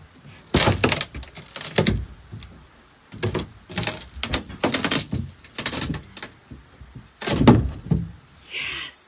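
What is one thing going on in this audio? Wooden boards knock and scrape as they are moved.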